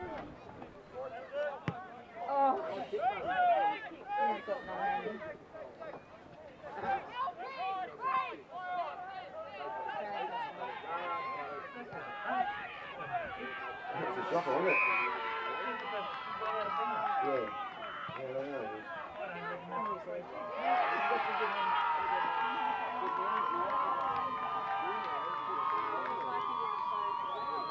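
A crowd of spectators cheers and shouts from a distance.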